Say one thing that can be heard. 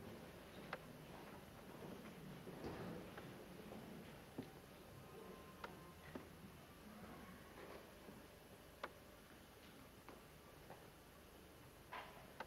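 An accordion plays in a large hall.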